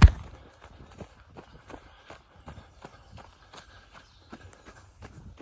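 Footsteps crunch steadily on dry leaves and twigs outdoors.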